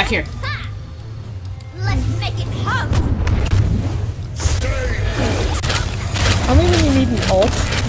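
Fiery blasts whoosh and burst during a fight.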